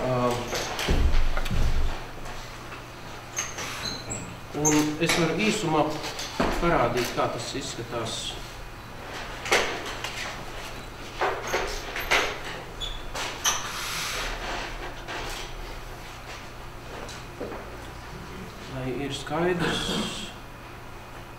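A man speaks calmly through a microphone, in short bursts.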